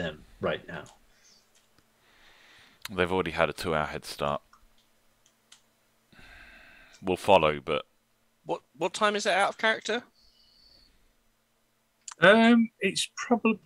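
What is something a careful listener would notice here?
Several men talk with animation over an online call, taking turns.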